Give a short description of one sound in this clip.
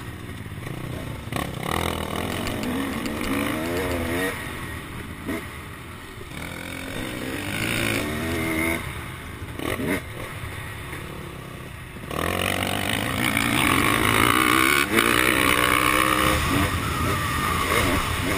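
A motorcycle engine revs and roars up close, rising and falling in pitch.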